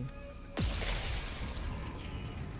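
A gun fires a loud shot that booms and rumbles away.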